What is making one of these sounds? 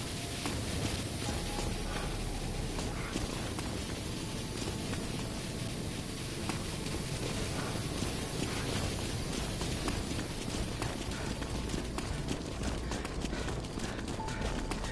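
Footsteps crunch quickly over snowy ground.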